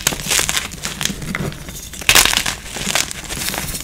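Powdery dust sifts and patters down through fingers.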